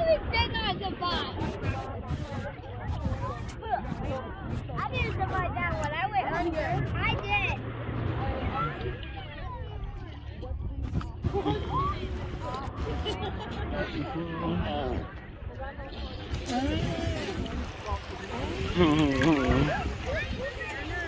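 Shallow sea water splashes and laps gently.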